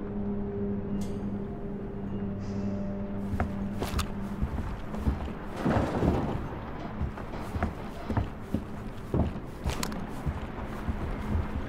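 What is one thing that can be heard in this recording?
Footsteps thud on a hard floor at a walking pace.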